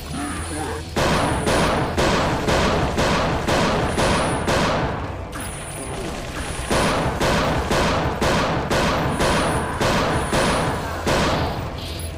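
A handgun fires rapid shots in quick succession, each with a sharp echoing crack.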